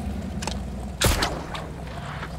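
A grappling gun fires with a sharp bang.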